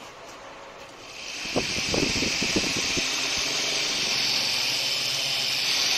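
A small electric fan whirs steadily.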